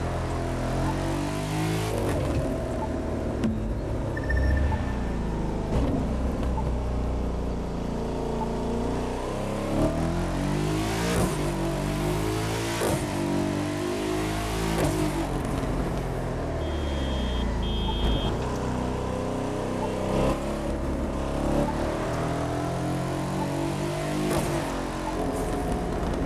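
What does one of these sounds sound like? A sports car engine revs up and down through the gears.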